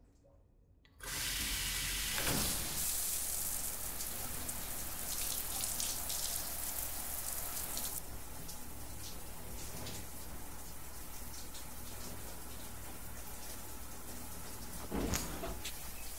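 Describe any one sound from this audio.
A shower sprays water steadily.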